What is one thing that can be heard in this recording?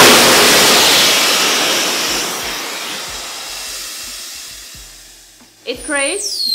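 An airbag inflates with a loud rushing hiss that slowly fades.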